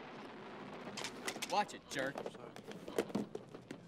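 Plastic cases clack as they are stacked on a table.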